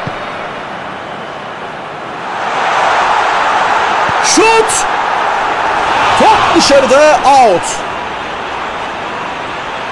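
A large crowd roars and swells in a stadium.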